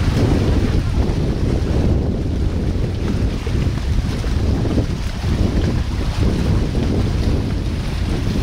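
Water rushes and splashes over rocks close by.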